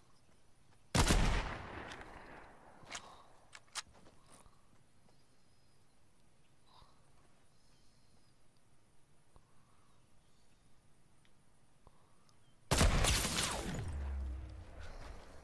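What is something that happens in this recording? A sniper rifle fires loud shots that echo away.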